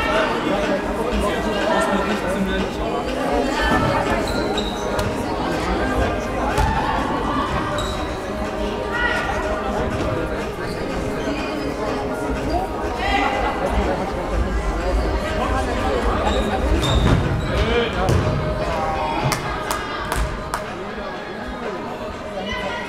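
A ball is kicked with sharp thuds.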